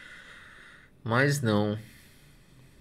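A man hums thoughtfully close to a microphone.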